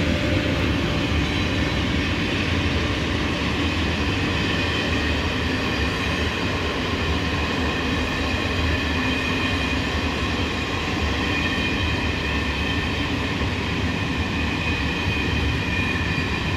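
A train engine rumbles steadily from close by.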